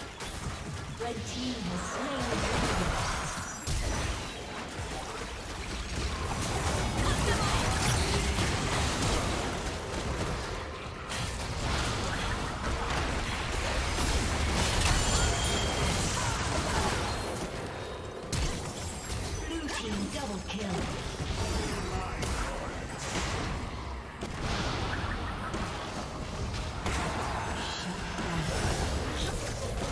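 Spells and weapons clash and blast in a fast battle.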